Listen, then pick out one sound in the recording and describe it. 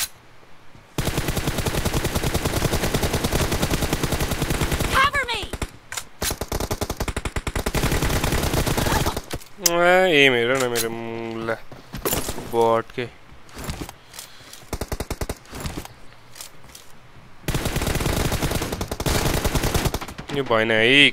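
Automatic gunfire rattles in rapid, sustained bursts.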